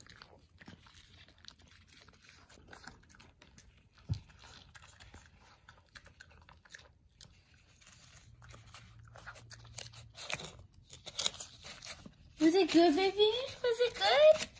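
A dog licks and laps at a paper plate up close.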